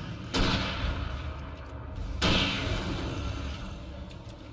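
A gunshot booms twice, each one ringing out and slowly fading.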